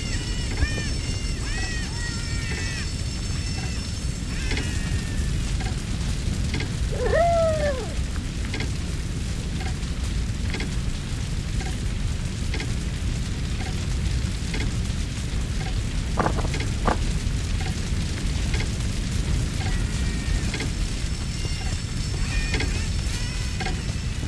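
Footsteps thud steadily on the ground.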